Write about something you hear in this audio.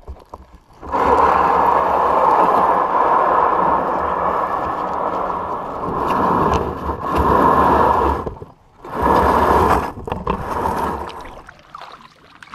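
An inflatable boat's hull scrapes and rumbles over rough ground.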